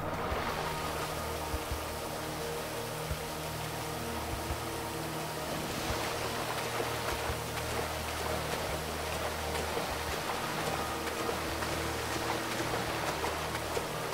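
Rough waves churn and crash loudly.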